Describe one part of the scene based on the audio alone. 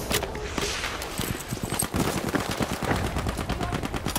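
Footsteps crunch quickly on dirt.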